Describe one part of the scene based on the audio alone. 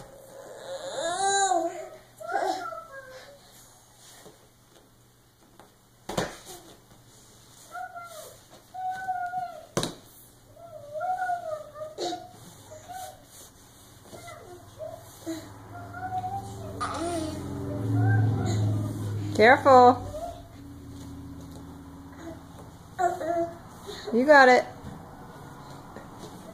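A baby babbles nearby.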